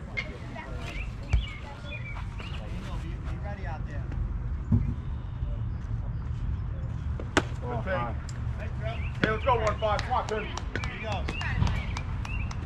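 Young players shout and cheer across an open field.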